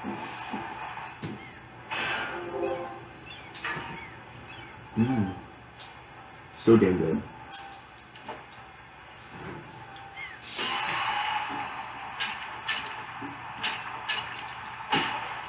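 Video game music and sound effects play from a television.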